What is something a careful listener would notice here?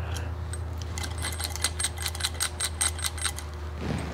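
Metal tubes and hooks clink and rattle lightly in a hand.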